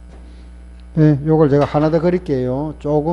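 A man speaks through a microphone, calmly explaining.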